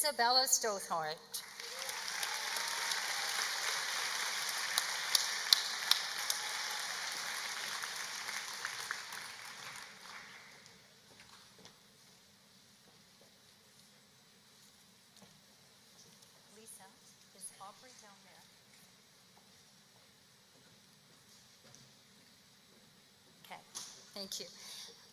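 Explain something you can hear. A woman speaks calmly into a microphone in a large echoing hall.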